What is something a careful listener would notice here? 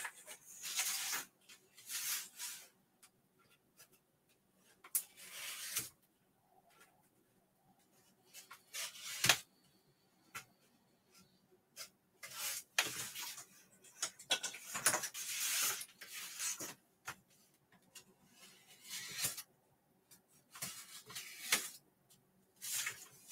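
A pen scratches and squeaks across paper in short strokes.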